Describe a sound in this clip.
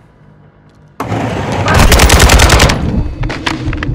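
A rifle fires a rapid, loud burst of shots indoors.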